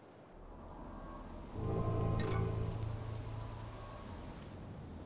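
Fighting units clash with metallic clangs and bursts.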